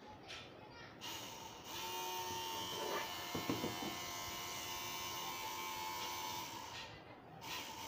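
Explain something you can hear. A small electric motor whirs steadily.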